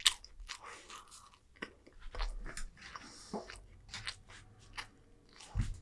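A young man chews food close to a microphone.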